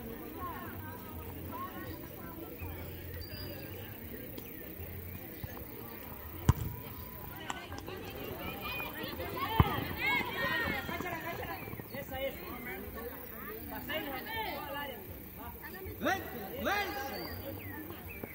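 Young girls shout and call to each other across an open field.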